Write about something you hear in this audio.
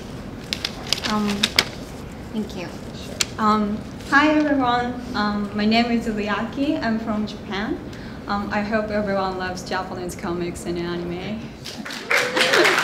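A young woman speaks through a microphone with a cheerful tone.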